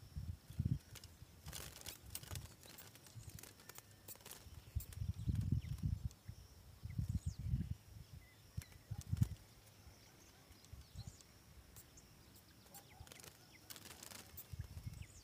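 A small bird flutters its wings against a wire cage.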